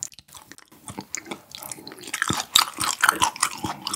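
Metal chopsticks clink against a glass dish.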